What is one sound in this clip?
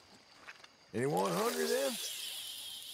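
A fishing rod swishes as a line is cast out.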